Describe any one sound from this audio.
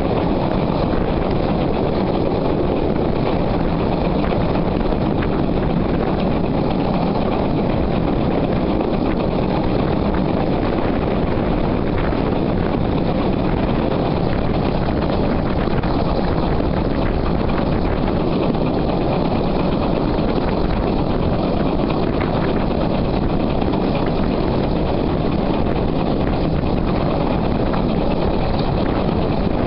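Wind buffets loudly past the moving train.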